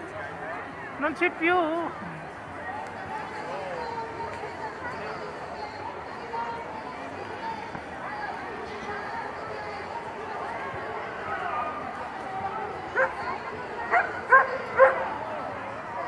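Children shout and squeal with high voices nearby.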